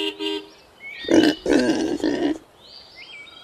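A pig grunts and squeals.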